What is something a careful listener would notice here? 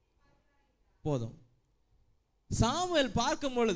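A man sings loudly into a microphone, heard through a loudspeaker.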